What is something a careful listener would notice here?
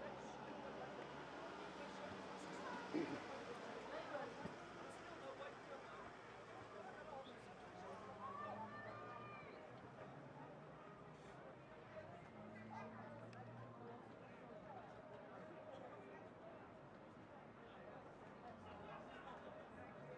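A crowd of spectators murmurs and chatters outdoors at a distance.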